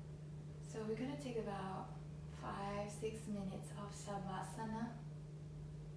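A young woman speaks calmly and softly nearby.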